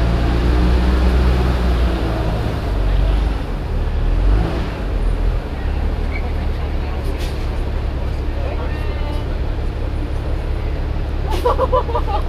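A large vehicle's engine rumbles low and steadily while it rolls slowly.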